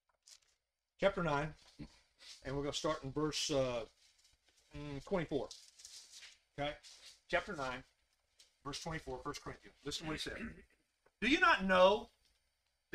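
An older man speaks calmly through a microphone, reading aloud.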